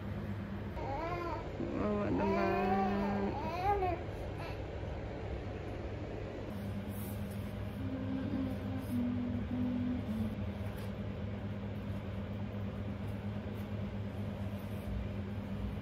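A baby swing plays a soft electronic lullaby.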